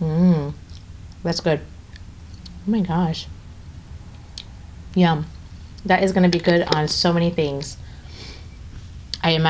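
A young woman talks calmly and close to a microphone, in short bursts.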